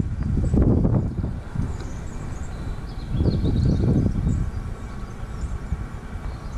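Wind gusts buffet loudly across open water.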